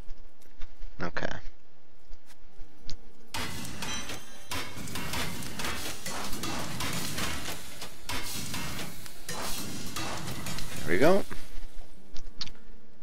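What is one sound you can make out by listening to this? Short clicks and chimes sound as menus open.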